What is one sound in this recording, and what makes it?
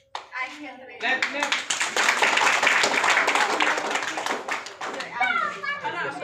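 People clap and cheer together.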